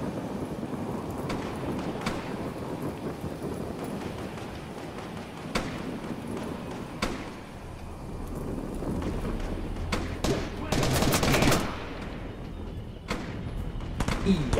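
Wind rushes steadily past a glider descending through the air.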